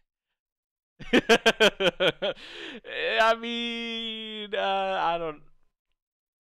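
A young man laughs close to a headset microphone.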